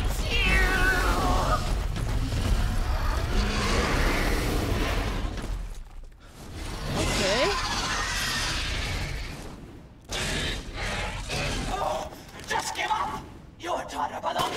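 A young woman talks into a close microphone.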